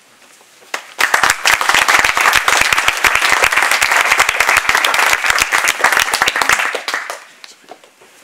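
A small audience claps and applauds.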